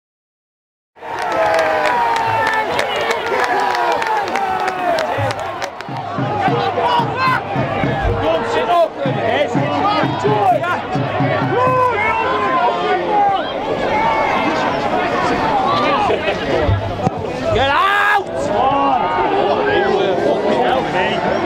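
A crowd of spectators shouts and calls out outdoors.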